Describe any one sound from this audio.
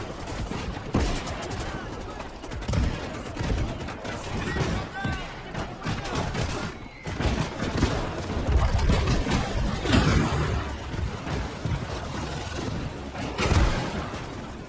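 Tank guns fire with loud booming blasts.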